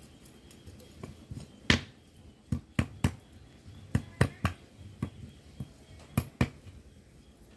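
A large knife chops sharply on a board, in uneven blows.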